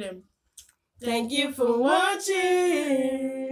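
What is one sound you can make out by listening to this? A woman and a girl sing together.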